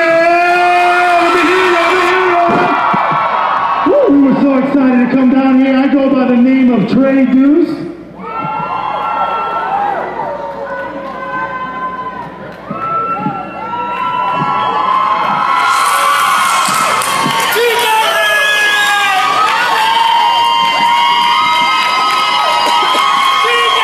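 Men sing into microphones through loud speakers.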